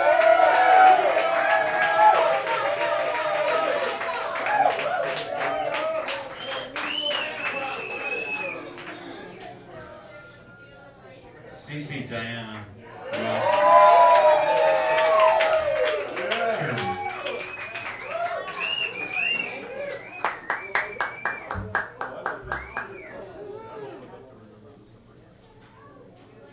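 Electric guitars play.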